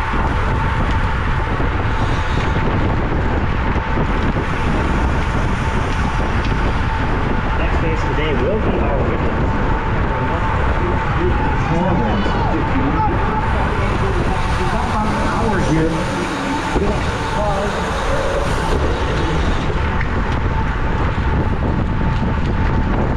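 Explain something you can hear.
Wind roars steadily over a microphone outdoors.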